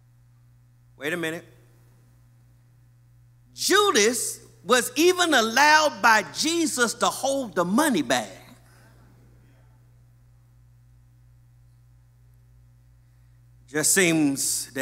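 A man preaches with animation into a microphone, with pauses between phrases.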